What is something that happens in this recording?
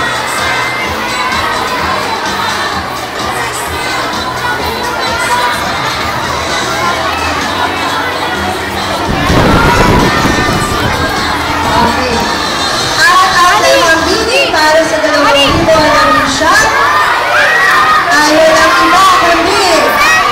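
A crowd of children and adults chatters nearby outdoors.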